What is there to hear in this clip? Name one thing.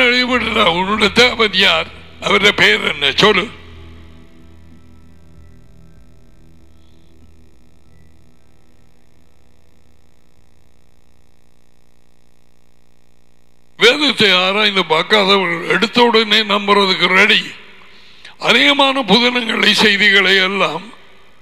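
A middle-aged man speaks with animation into a close microphone.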